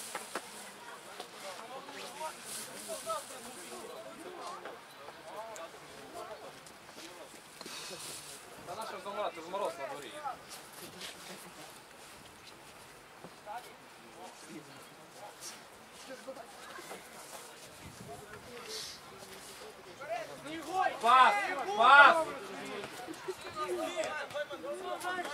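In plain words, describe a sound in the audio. Young men shout and call out to each other across an open pitch.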